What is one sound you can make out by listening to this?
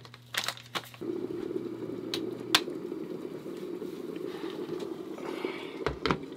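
Water rumbles and bubbles as it boils in an electric kettle.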